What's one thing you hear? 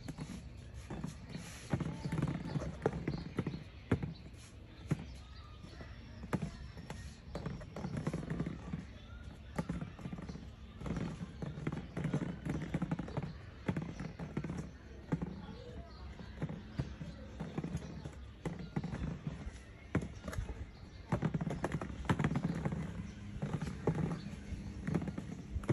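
A boy talks with animation close by.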